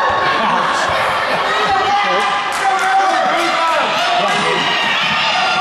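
Spectators talk and call out in an echoing gym.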